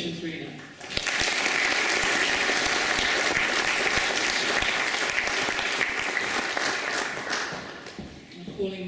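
A crowd applauds loudly in a large hall.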